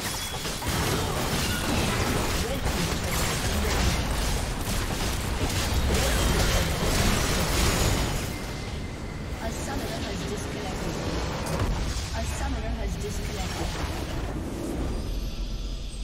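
Magical blasts, clashing hits and crackling spell effects from a video game battle sound in quick succession.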